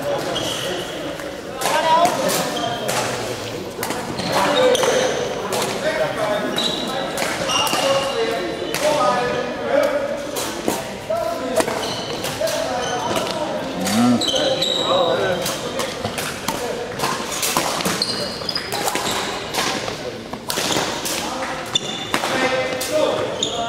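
Shoes squeak on a hard court floor.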